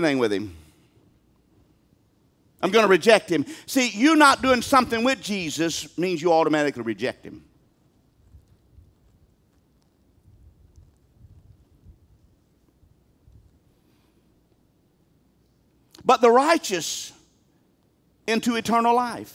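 A middle-aged man speaks with feeling through a headset microphone, with long pauses.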